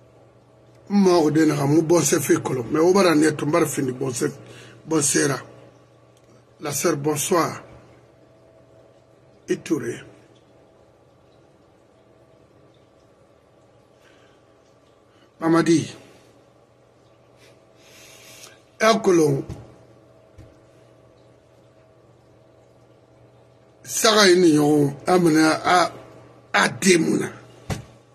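An elderly man speaks with animation close to a microphone, in bursts with pauses.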